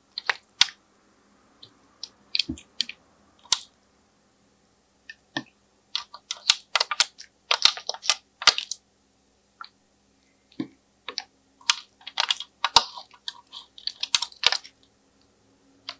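Fingers squish and press into soft slime.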